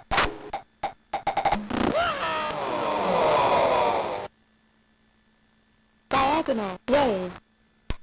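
Arcade game sound effects beep and blip in quick bursts.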